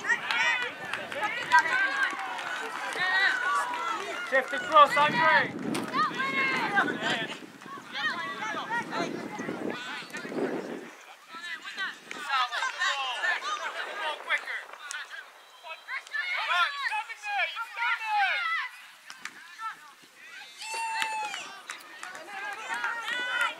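Young children shout and call out across an open field.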